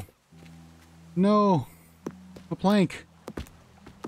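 A wooden block is set down with a soft knock.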